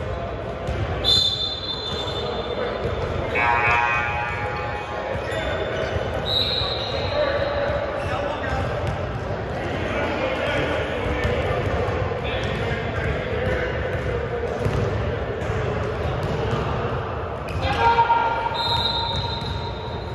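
A referee blows sharp whistle blasts in a large echoing gym.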